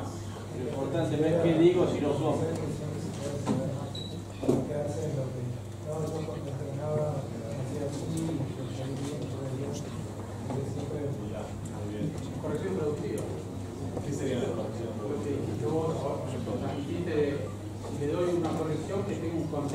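A man speaks with animation to an audience in a room with a slight echo.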